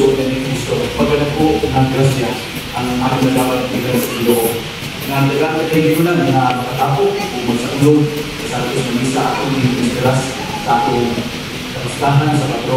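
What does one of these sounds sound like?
A congregation sings together in a large, echoing hall.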